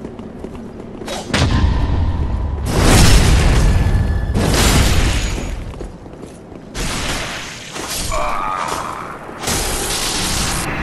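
Fiery magic bursts with a roaring whoosh.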